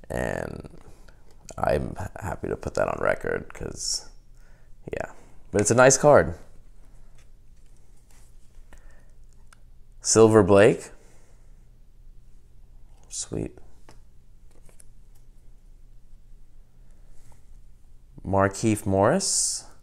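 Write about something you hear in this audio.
Stiff cards slide and tap against each other in hands.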